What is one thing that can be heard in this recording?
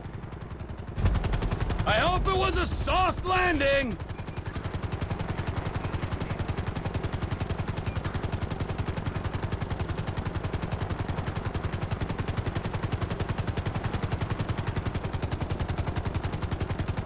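A helicopter's rotor thumps in a fast, steady beat close by.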